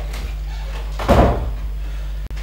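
A door slams shut.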